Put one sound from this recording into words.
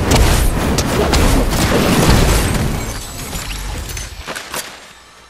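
Gunfire and explosions crackle loudly in a game.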